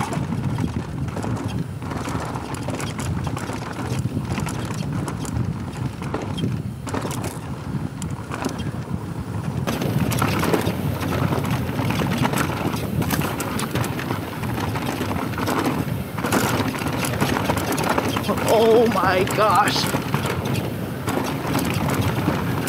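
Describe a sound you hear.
A bicycle's frame and chain rattle over bumps.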